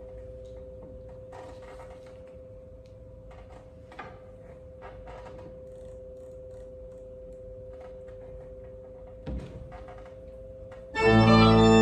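An organ holds a soft, steady note.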